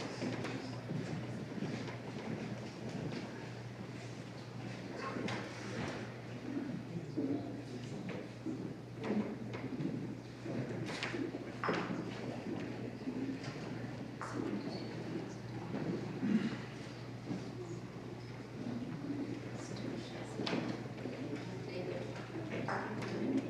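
A woman chants softly in an echoing room.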